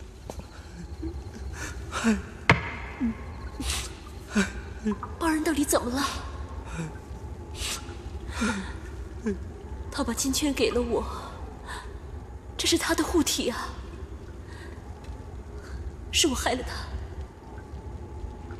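An elderly man speaks in a low, rough voice.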